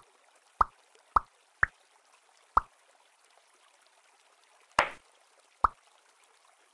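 Short, bright game pops sound now and then as blocks merge.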